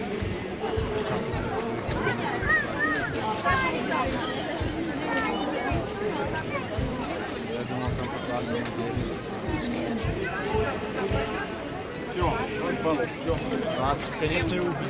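A large crowd of men and women chatters and calls out close by, outdoors.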